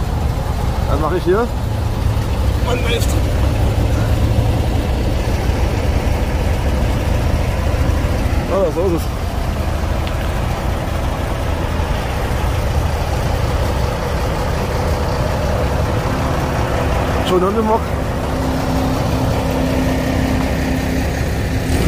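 A diesel engine rumbles steadily as an old truck drives slowly past close by.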